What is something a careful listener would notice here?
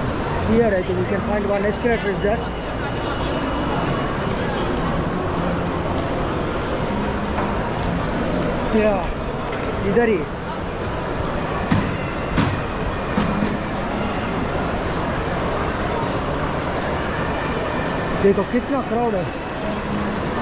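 A middle-aged man speaks close to the microphone.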